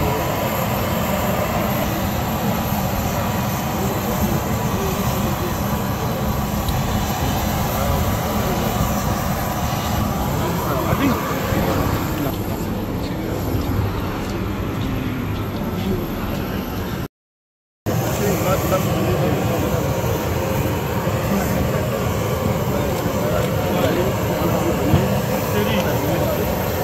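Men talk and greet each other nearby, outdoors.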